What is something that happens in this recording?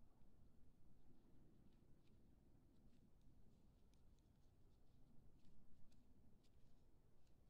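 Knitting needles click softly and quickly.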